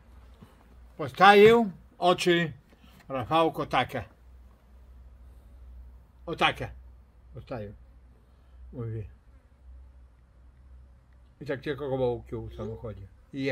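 A middle-aged man talks calmly and close by, in pauses.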